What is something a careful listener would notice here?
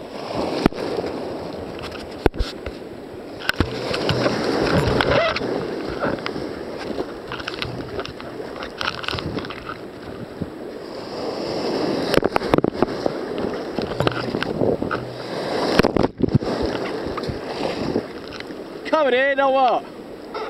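Waves crash and churn around a kayak.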